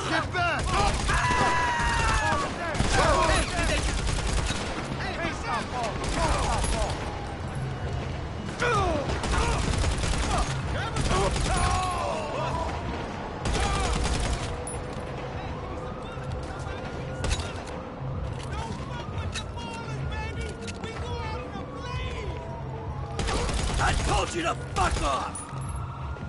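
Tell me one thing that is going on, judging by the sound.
A pistol fires a series of shots.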